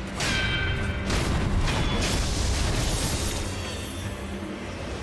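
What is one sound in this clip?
Metal blades clash and ring sharply.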